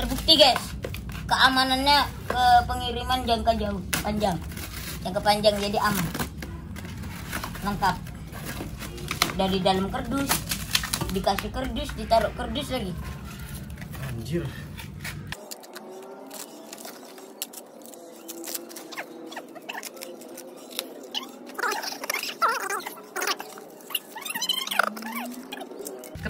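Cardboard rustles and crinkles as it is handled.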